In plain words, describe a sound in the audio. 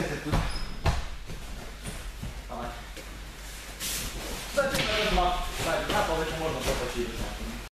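Bare feet thud softly on a gym mat.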